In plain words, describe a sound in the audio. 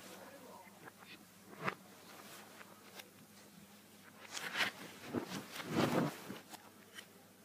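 Bedding rustles and thumps as a young woman flops onto a bed.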